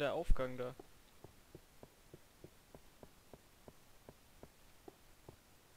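Footsteps tap softly and evenly on stone.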